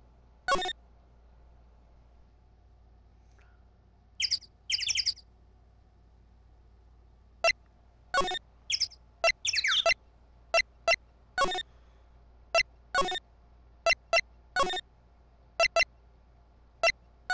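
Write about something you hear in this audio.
Short electronic menu blips chirp now and then.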